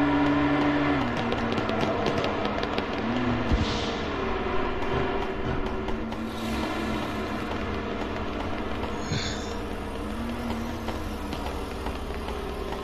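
A vehicle engine hums steadily as it drives, its pitch shifting up and down.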